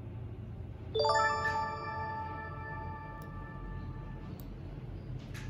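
A bright game reward jingle chimes and rings out.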